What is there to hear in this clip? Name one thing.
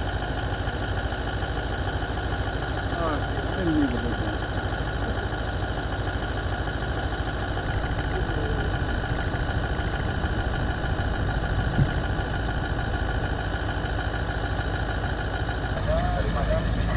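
An armoured vehicle's engine idles with a steady low rumble.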